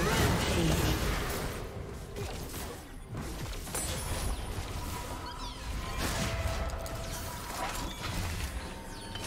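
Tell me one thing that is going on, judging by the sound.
Spell effects whoosh and crackle in a game as characters fight.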